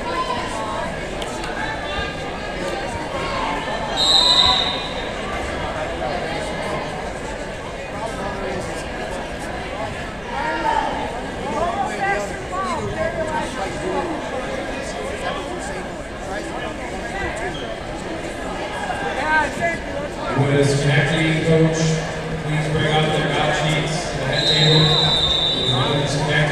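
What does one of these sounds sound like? A crowd chatters and cheers in an echoing gym.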